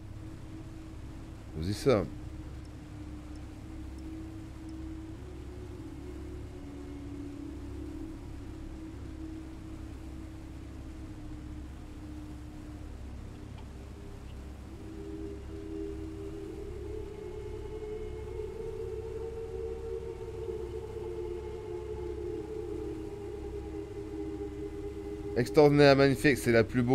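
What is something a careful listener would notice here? Soft, calm music plays steadily.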